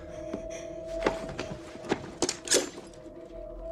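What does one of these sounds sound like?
A young woman rattles and tugs at metal restraints.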